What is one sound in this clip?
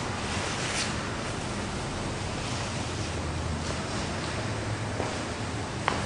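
Hands rustle against a cape.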